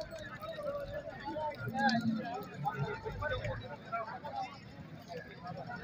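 Many men talk at once outdoors in a busy crowd.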